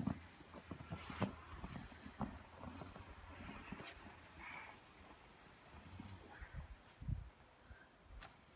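Footsteps crunch through snow close by.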